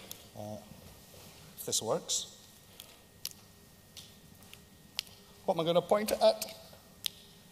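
An older man speaks into a microphone in short bursts, with long pauses.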